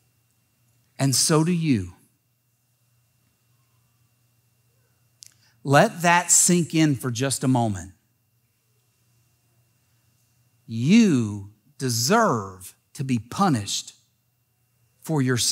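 A middle-aged man speaks through a microphone with pauses, in a calm, expressive manner.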